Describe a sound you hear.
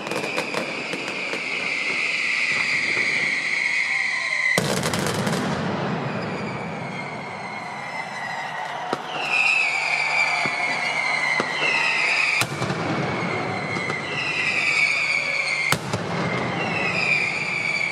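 Whistling fireworks shriek with falling pitch, over and over.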